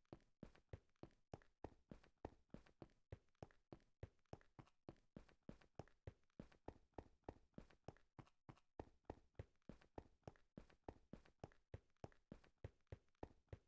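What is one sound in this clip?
Quick footsteps crunch steadily on rough stone.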